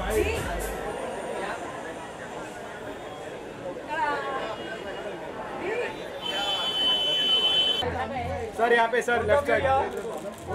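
A crowd of adults chatters and calls out nearby.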